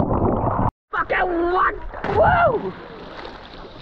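A young man shouts with excitement.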